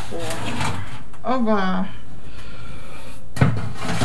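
An oven door opens with a clunk.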